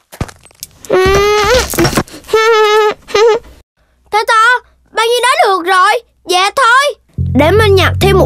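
A high-pitched cartoon character speaks in an excited, squeaky voice.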